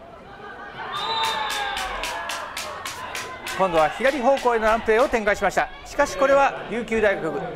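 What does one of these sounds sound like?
Spectators clap rapidly.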